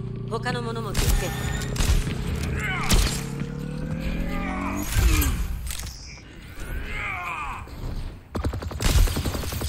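Gunfire from a rifle cracks in sharp bursts.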